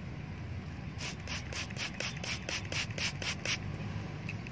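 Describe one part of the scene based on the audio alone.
A hand-pump trigger sprayer sprays liquid onto leaves in short bursts.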